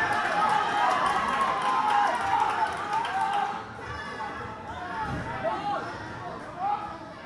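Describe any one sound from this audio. A crowd shouts and cheers loudly in a large echoing hall.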